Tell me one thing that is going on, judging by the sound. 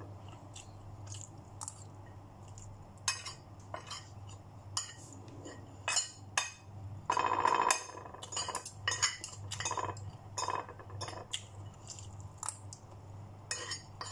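A woman chews food close by.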